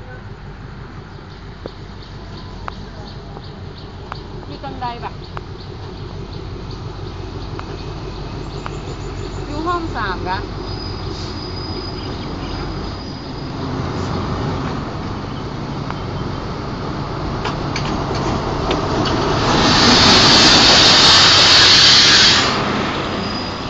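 A diesel locomotive approaches and roars past close by.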